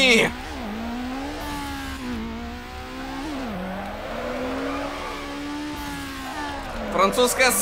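A car engine revs high and wavers as the car drifts.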